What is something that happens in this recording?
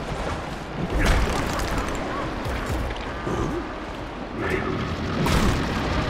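A creature digs into the ground with crunching, clattering thuds.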